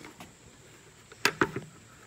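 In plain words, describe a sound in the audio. A plastic jug bumps against a wooden table.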